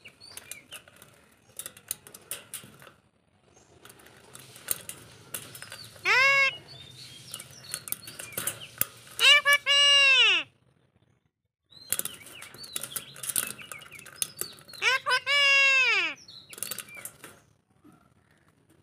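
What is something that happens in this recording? A parrot chatters and clicks softly.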